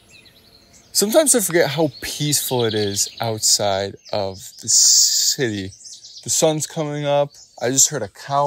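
A young man talks close to the microphone with animation.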